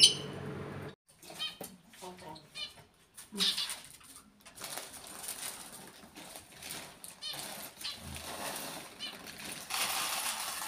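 A cockatoo squawks and chatters.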